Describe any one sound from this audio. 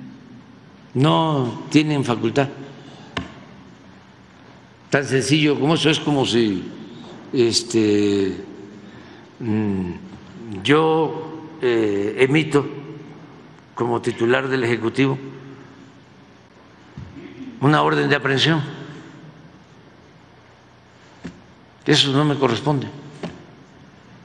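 An elderly man speaks calmly into a microphone, in pauses.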